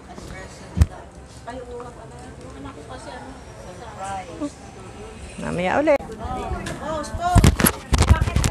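Middle-aged women chat nearby.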